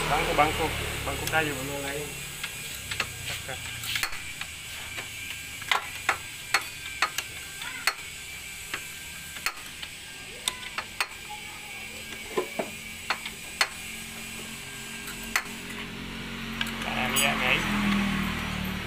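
A ratchet wrench clicks as metal bolts are turned.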